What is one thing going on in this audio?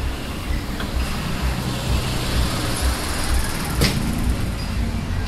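A bus drives past.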